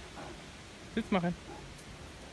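A dog barks once, close by.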